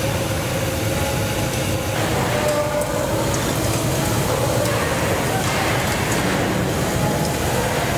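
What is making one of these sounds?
Gas burners roar steadily.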